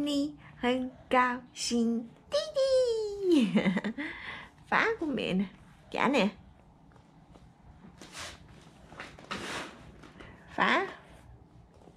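A baby babbles and squeals up close.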